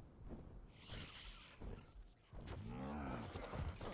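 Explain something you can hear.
A large winged creature flaps its wings.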